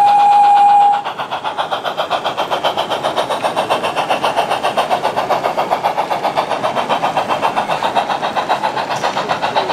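A model steam locomotive chuffs in a quick, steady rhythm.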